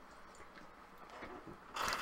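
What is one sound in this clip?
A man gulps down a drink.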